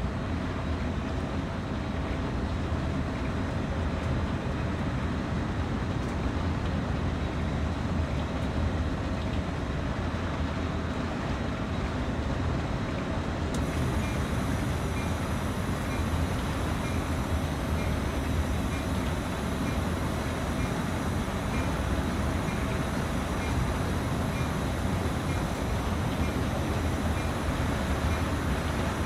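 Train wheels roll and clatter over the rails.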